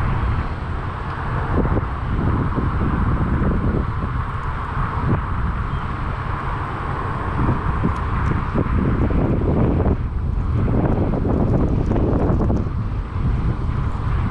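Wind blusters loudly across the microphone outdoors.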